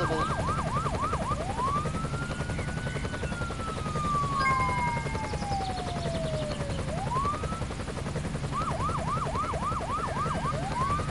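A siren wails, rising and falling, with quick yelps in between.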